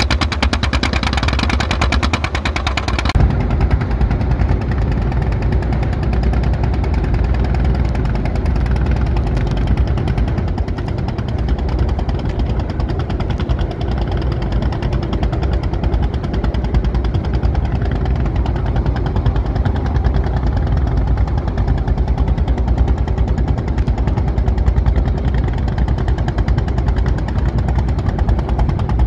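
A boat engine chugs steadily close by.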